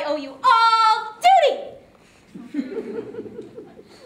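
A girl squeals and laughs loudly close by.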